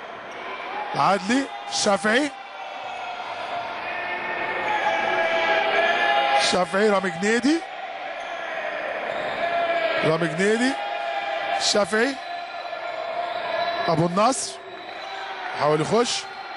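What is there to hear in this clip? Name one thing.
A crowd chants and cheers loudly in a large echoing hall.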